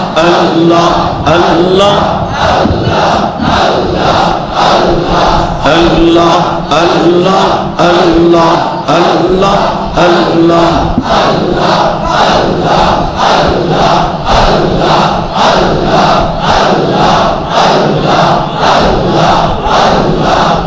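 A man preaches forcefully into a microphone, heard through loudspeakers with a rhythmic, chanting delivery.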